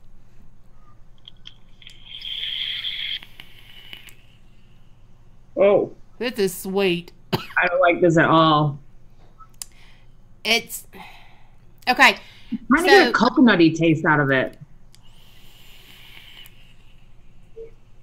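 A young woman exhales vapor with a soft hiss.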